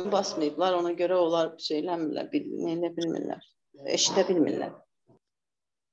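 A middle-aged woman speaks calmly over a phone.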